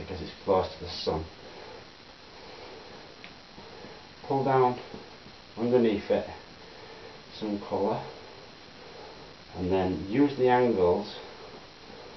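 A man talks calmly and close by, in short phrases with pauses.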